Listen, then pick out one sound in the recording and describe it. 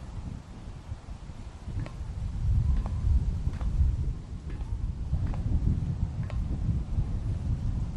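Footsteps clank on a metal ladder as someone climbs.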